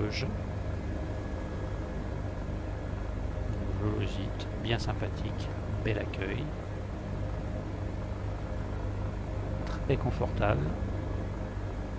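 A helicopter engine and rotor drone steadily inside the cabin.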